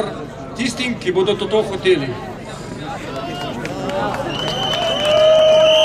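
A young man reads out through a microphone and loudspeaker.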